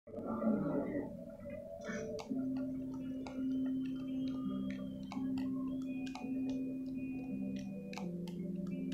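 Rock music with distorted guitar and drums plays from a television speaker.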